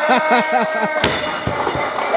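A heavy wooden log thuds down onto blocks.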